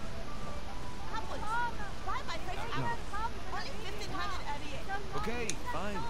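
A woman calls out loudly, selling fruit.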